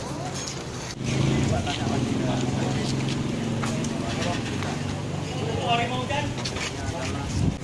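A man speaks loudly to a group outdoors.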